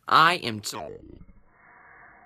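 A teenage boy speaks briefly close to the microphone.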